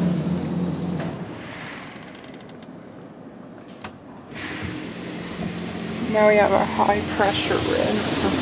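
Large rotating brushes scrub and slap against a car's body.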